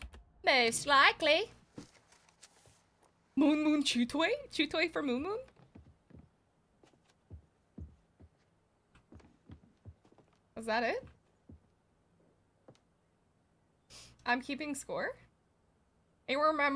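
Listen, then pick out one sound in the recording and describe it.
A young woman talks animatedly into a close microphone, in bursts with pauses.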